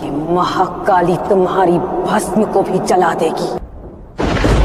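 A young woman speaks dramatically, close by.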